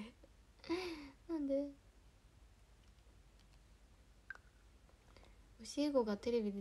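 A young woman speaks close to a microphone, in short bursts.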